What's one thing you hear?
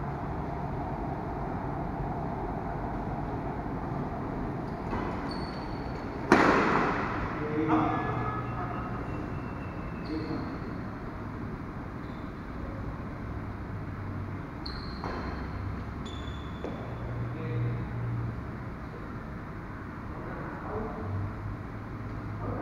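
Rackets strike a shuttlecock in a large echoing hall.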